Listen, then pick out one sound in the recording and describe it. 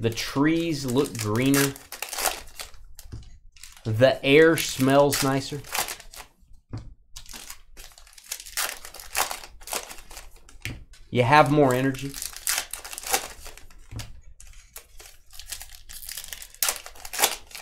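Card wrappers crinkle and rustle as they are torn open.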